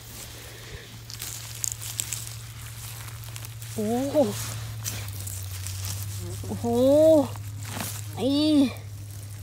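A hand rustles through dry moss and leaves close by.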